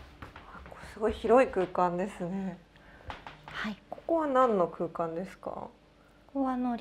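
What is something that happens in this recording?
A young woman speaks with animation nearby.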